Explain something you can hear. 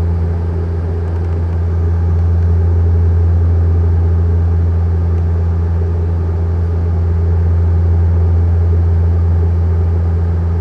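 Aircraft engines drone steadily, heard from inside the cabin.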